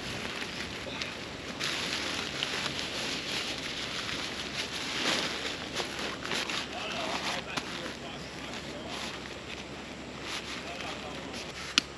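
Cardboard rustles and scrapes as a man handles a sheet of it.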